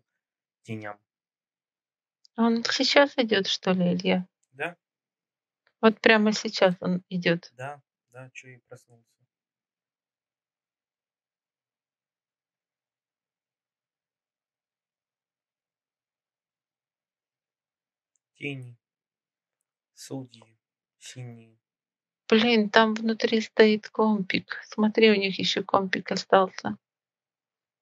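A woman speaks calmly through a headset microphone on an online call.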